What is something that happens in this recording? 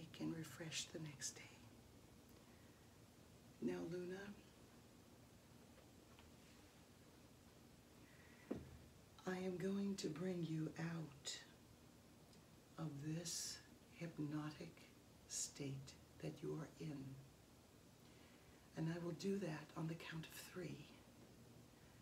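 A woman speaks close by in short, expressive phrases with pauses between them.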